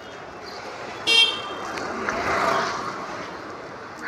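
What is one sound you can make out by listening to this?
A motorbike engine hums as it rides past on the street.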